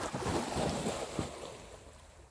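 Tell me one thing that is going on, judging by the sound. A dog splashes loudly into water.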